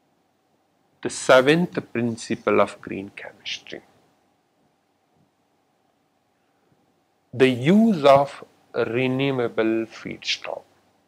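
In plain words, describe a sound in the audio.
A man lectures calmly into a close microphone.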